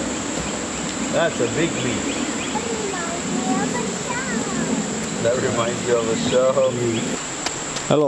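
A young girl shouts and chatters.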